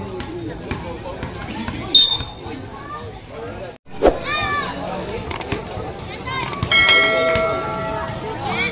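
A crowd chatters and calls out outdoors.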